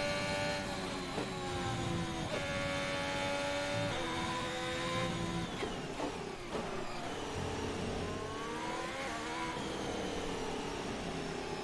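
A racing car engine screams at high revs, shifting gears up and down.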